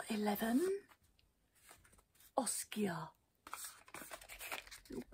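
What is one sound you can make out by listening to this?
Cardboard drawers slide and rustle as they are handled.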